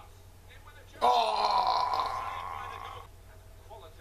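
A young man cries out loudly into a microphone.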